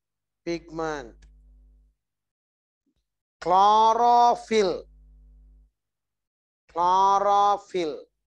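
A man lectures in bursts through a clip-on microphone.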